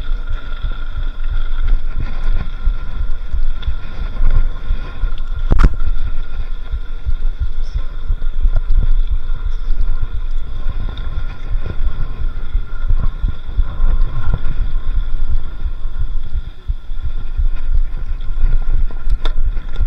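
Bicycle tyres crunch and rattle on a gravel track.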